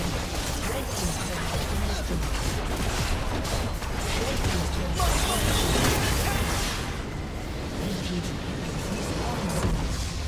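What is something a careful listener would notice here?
Spell effects and weapon hits clash rapidly in a video game battle.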